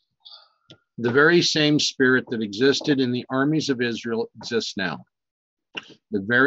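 An older man speaks calmly and closely into a microphone, as if reading aloud.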